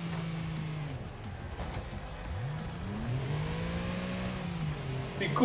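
Tyres skid and scrape over loose dirt.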